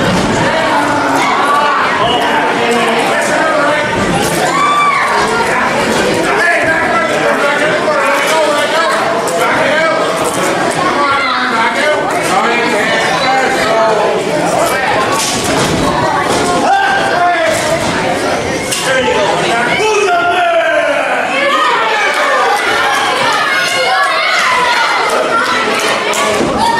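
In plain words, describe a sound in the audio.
A crowd of spectators chatters and shouts in an echoing hall.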